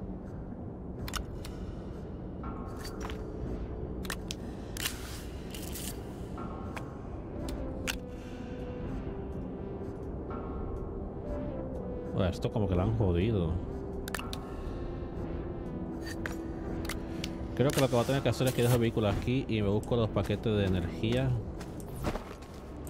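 Short electronic clicks and chimes sound.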